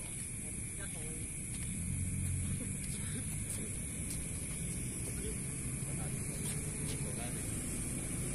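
Sneakers scuff on a concrete court outdoors.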